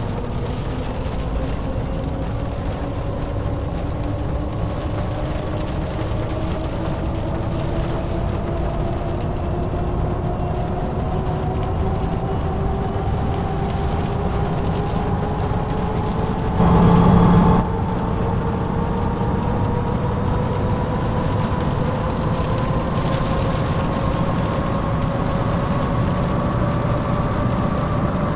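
A bus engine drones and slowly rises in pitch as the bus speeds up.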